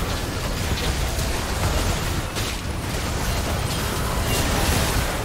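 Magic spell blasts crackle and whoosh in quick bursts.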